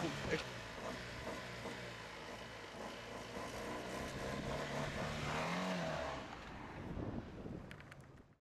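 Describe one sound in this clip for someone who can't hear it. Tyres roll over paving stones.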